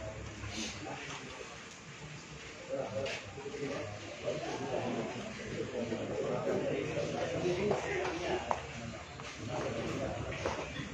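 A crowd of men chatter nearby in a room.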